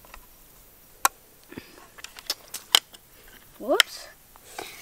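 Small plastic clicks and snaps sound sharply.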